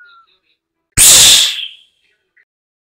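An object splashes heavily into water.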